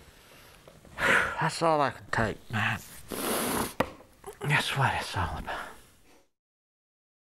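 An elderly man speaks slowly and with emotion, close to a microphone.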